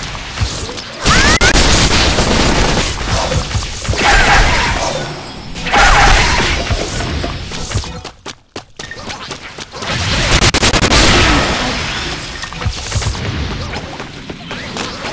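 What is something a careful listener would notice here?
Spell effects crash and whoosh in quick bursts.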